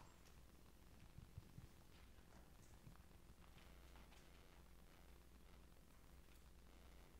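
Footsteps shuffle softly on a stage floor.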